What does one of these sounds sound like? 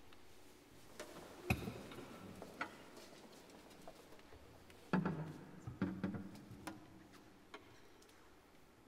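Performers shuffle and shift about, with scattered knocks echoing in a large hall.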